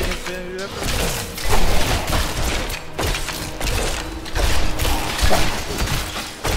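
Weapons clash and flesh is struck in a quick fight.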